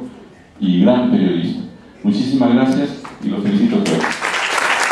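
An elderly man speaks loudly through a microphone in a large hall.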